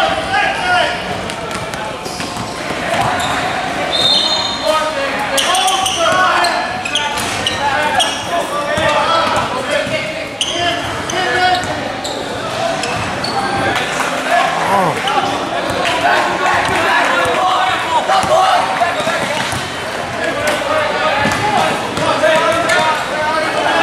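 Young boys and adults call out and chatter in an echoing gym.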